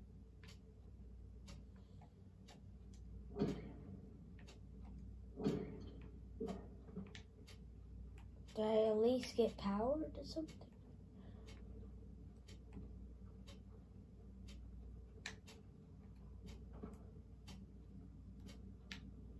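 Video game sounds play from a television, with a steady ticking beat.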